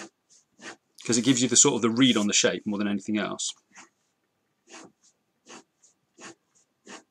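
A pencil scratches across paper in short strokes.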